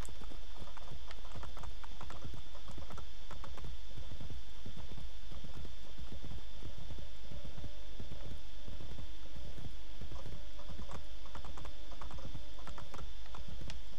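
Horse hooves thud rapidly in a steady gallop.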